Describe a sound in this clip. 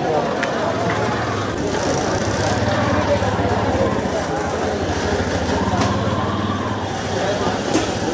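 An auto rickshaw engine idles with a low, rattling hum nearby.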